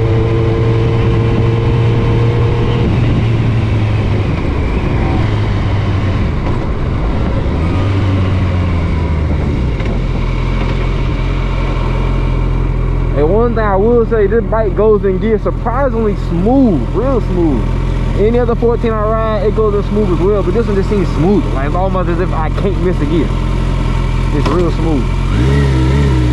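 A motorcycle engine hums steadily, then settles to a low idle.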